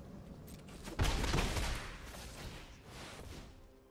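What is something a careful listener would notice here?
A magical whooshing effect sweeps past.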